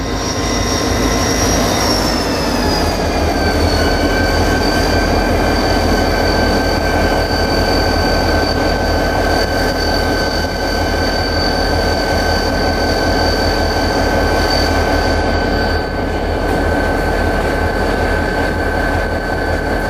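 Steel wheels rattle and clack on the rails.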